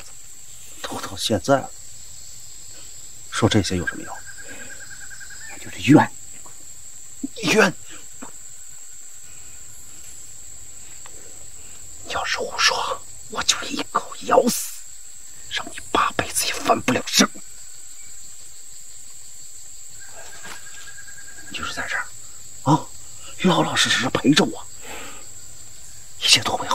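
A man speaks close by, in a rough, taunting voice.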